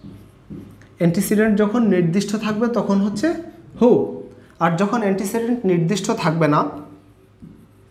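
A young man speaks clearly and with animation close to a microphone.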